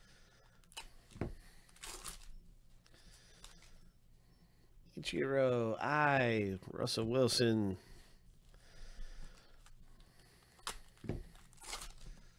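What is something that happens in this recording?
A foil wrapper crinkles and rustles in someone's hands.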